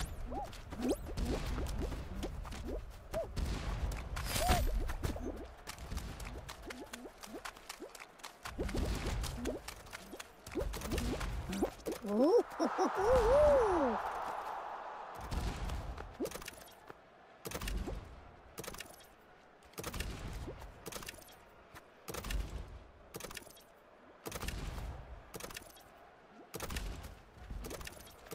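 Bouncy cartoon game sound effects pop and thump.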